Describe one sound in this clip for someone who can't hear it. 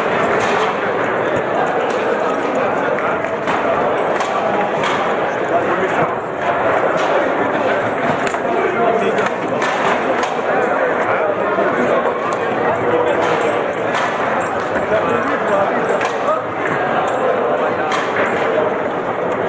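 A foosball ball clacks sharply against the rods and walls of a table.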